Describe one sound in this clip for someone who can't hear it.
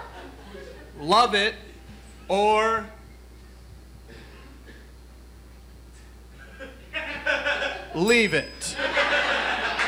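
A young man on a stage exclaims loudly in a drawn-out, sing-song voice.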